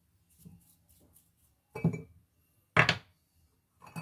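A metal tool clinks as it drops into a glass jar.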